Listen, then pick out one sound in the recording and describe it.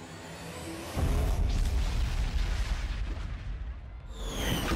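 Pyrotechnics burst with a loud booming rumble.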